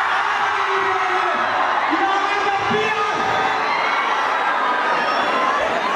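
A large crowd cheers and screams loudly in an echoing hall.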